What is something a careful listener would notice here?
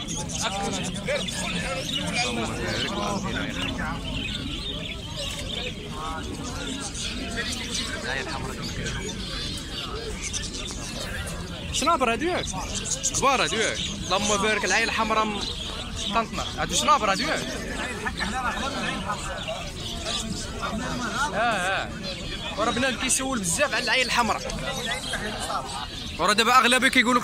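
Small birds chirp and whistle close by.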